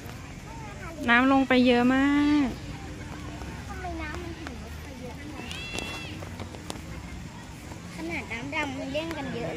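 A young girl talks loudly close by.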